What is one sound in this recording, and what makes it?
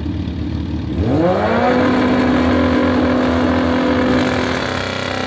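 A motorcycle engine revs up sharply and holds a loud high roar.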